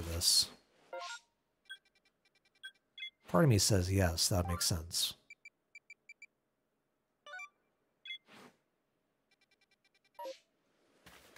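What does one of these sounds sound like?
Soft menu clicks and chimes sound.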